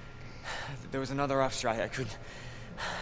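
A young man speaks quietly and hesitantly.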